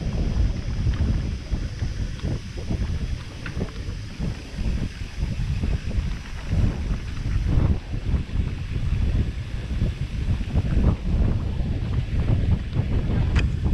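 Bicycle tyres rumble and bump over a dirt trail.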